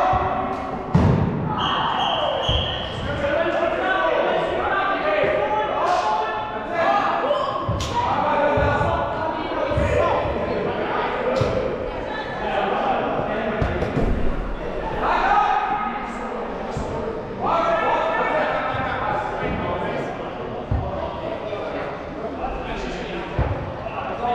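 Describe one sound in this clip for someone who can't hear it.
Balls thud against bodies and the floor.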